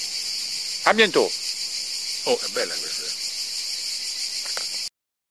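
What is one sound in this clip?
An elderly man speaks in short bursts, close by.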